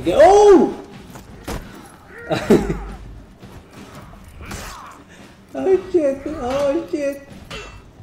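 Swords clash and thud in a fight.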